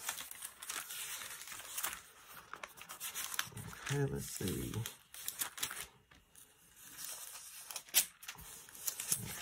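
Thin book pages rustle and flip close by.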